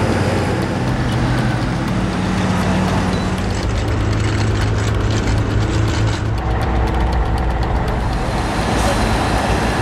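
Heavy machinery engines rumble.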